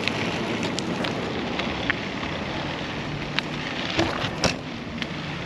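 A bicycle chain and gears rattle and click.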